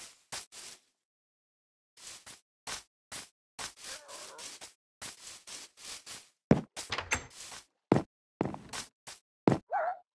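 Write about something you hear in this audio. Footsteps crunch softly on grass at a steady walking pace.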